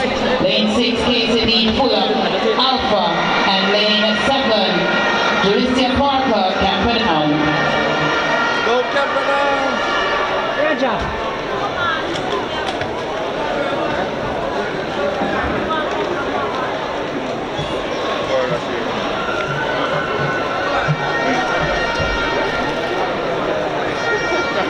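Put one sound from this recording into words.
A crowd of spectators murmurs and chatters in a large open stadium.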